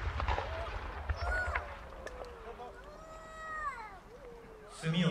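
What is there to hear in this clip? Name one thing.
A firework rocket whistles as it climbs.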